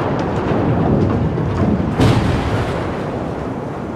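A steel hull crashes heavily to the ground with a deep rumble.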